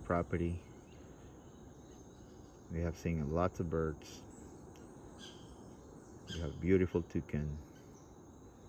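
A toucan gives harsh, croaking calls in short bursts.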